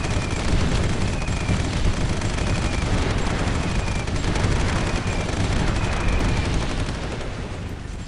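Explosions rumble and boom in a battle.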